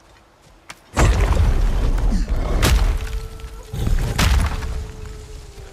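A heavy stone door grinds and rumbles open.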